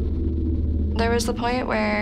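A teenage girl speaks calmly and close by.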